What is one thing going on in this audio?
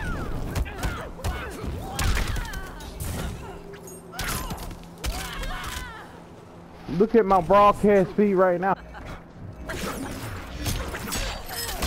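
Punches and kicks land with heavy, thudding blows.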